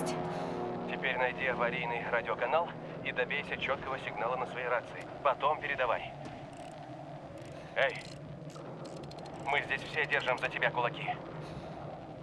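A man speaks through a crackly radio.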